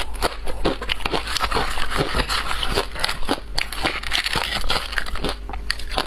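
Fingers rustle in a plastic container.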